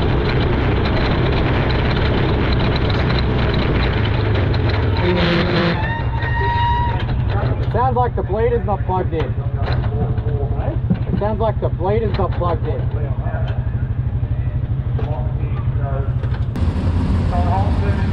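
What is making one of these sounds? A race car engine rumbles loudly up close.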